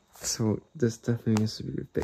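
Cardboard rustles and scrapes as it is handled.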